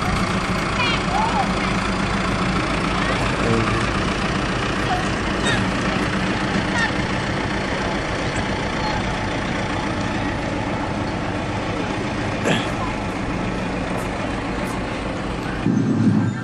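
A tractor engine rumbles steadily as a parade float rolls past outdoors.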